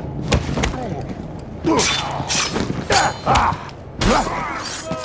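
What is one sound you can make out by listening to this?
Punches land with heavy thuds in a brawl.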